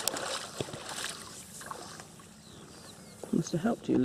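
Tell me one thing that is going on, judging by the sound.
Water sloshes as a landing net is lifted.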